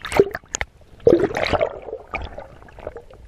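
Water splashes and churns as a diver plunges below the surface.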